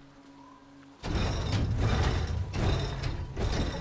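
Water splashes and rushes against a moving boat.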